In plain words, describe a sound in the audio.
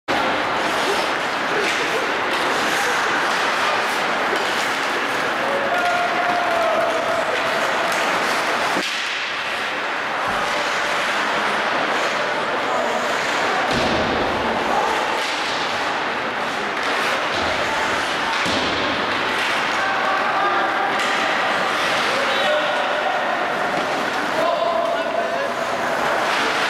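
A crowd cheers and chatters in a large echoing arena.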